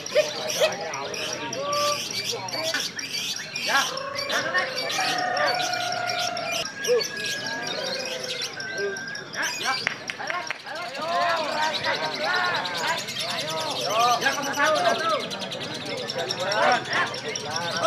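Many small birds chirp and twitter busily, close by.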